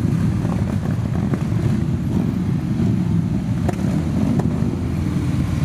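Many motorcycle engines rumble loudly in a slow procession.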